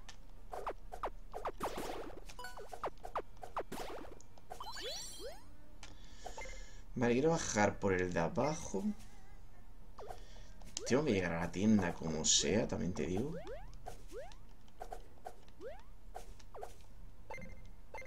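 Short video game sound effects blip and swish as a character jumps and attacks.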